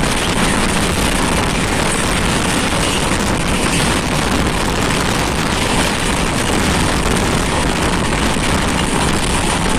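Wind roars loudly past an open train window.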